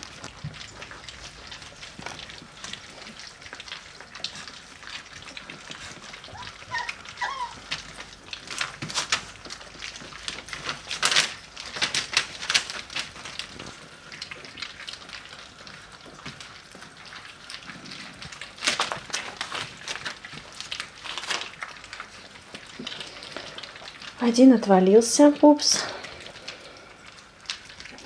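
Puppies lap and smack noisily at a metal food bowl.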